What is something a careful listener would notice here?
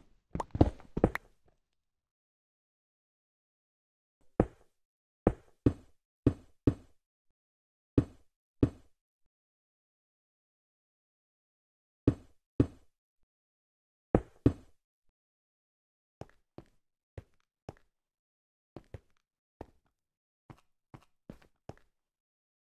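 Footsteps thud on stone, one short knock after another.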